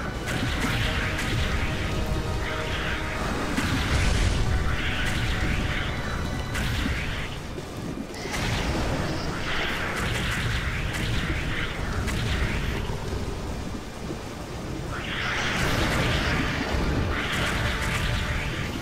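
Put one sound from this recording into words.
Explosions burst and rumble over and over.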